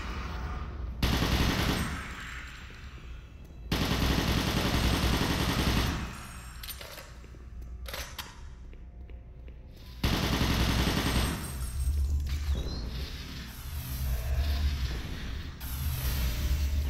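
Heavy gunfire blasts in loud bursts.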